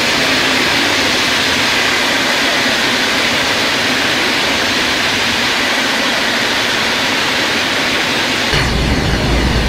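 A passing train rushes by with a steady hissing roar.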